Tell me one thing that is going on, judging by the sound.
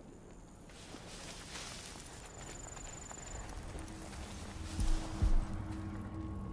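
Footsteps crunch softly on dry ground and through rustling grass.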